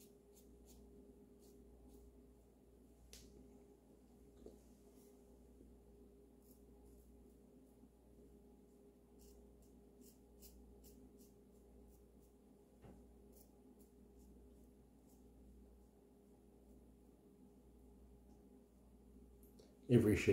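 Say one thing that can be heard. A razor scrapes softly over stubble.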